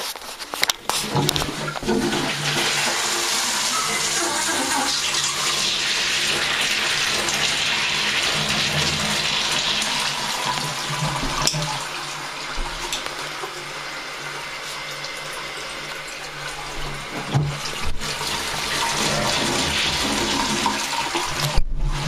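Water gushes loudly into a toilet bowl and drains away.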